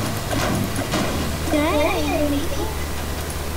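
A pickaxe clangs against a metal truck.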